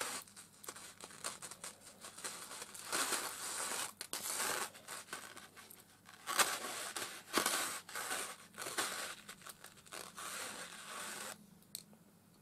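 A small metal chain clinks and rattles softly between fingers.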